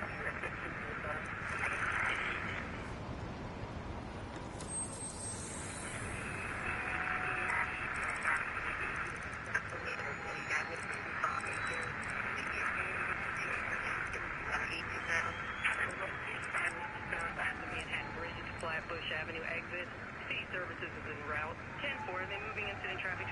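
Radio static hisses and warbles as a signal is tuned.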